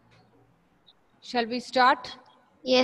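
A woman speaks into a headset microphone.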